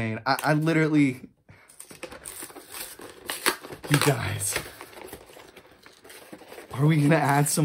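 A cardboard box rustles and scrapes in a hand.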